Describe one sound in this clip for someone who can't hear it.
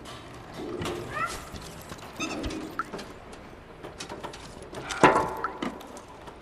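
Small metal footsteps clatter across a tin roof.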